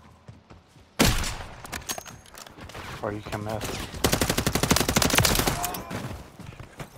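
Rifle shots crack loudly in quick bursts.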